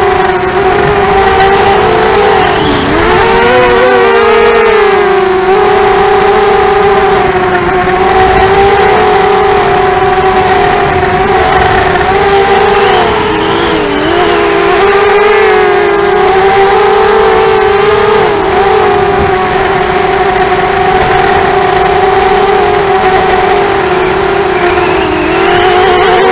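A small drone's motors whine loudly and steadily, rising and falling in pitch as it races low.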